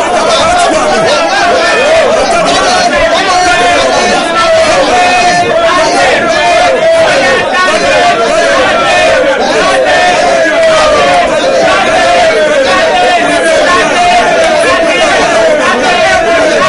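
A middle-aged man sings along.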